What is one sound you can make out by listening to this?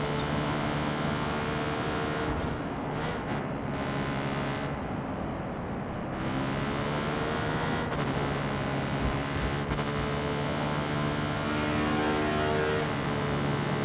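A quad bike engine hums steadily, rising and falling in pitch as it speeds along.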